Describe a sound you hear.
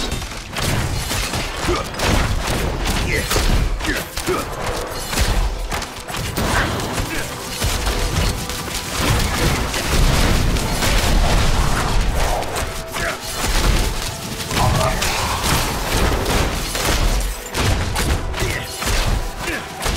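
Video game combat sounds of weapon hits and spells crash constantly.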